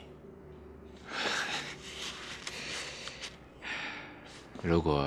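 A second man laughs softly.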